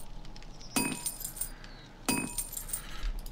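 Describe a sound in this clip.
A game interface clicks and chimes as items are moved.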